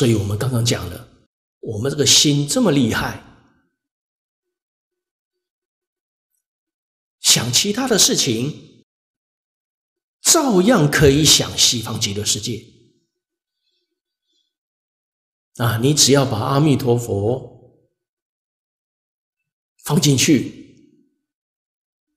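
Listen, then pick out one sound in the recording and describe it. A middle-aged man speaks calmly into a microphone, in short phrases with long pauses.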